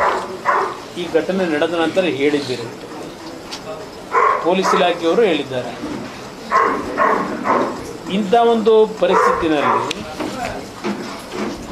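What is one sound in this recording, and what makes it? A middle-aged man speaks calmly into a microphone, reading out in short bursts.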